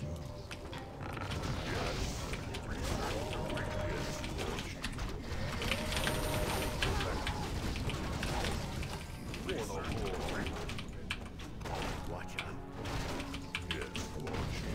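Weapons clash and spells burst in a busy game battle.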